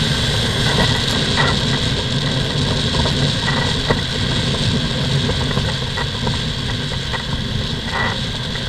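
A light aircraft engine drones steadily while idling.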